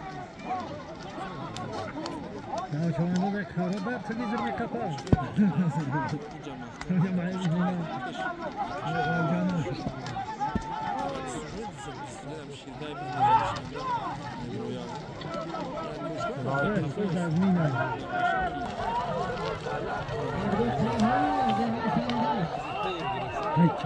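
A crowd of men shouts and calls out outdoors.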